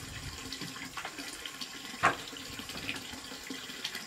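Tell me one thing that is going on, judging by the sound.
A wooden ladder creaks and knocks as a person climbs it.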